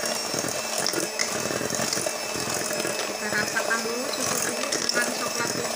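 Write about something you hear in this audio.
An electric hand mixer whirs steadily, beating in a metal bowl.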